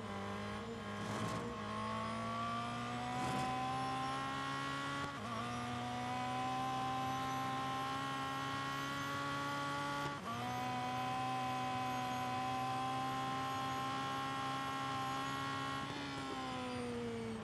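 A racing car engine roars at high revs, rising in pitch and dropping briefly at each gear change.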